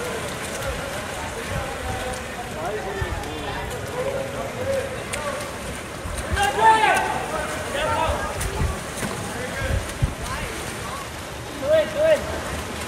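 Swimmers splash in the water.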